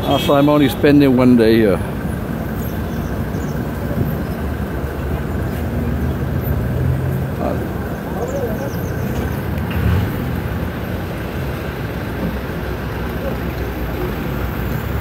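Bus engines idle with a low rumble nearby.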